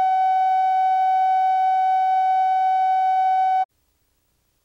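A steady high-pitched test tone beeps and then cuts off abruptly.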